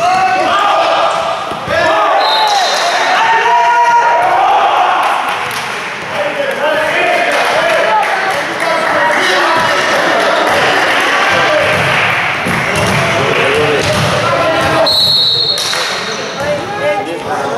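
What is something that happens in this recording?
A crowd of spectators cheers and shouts loudly in an echoing hall.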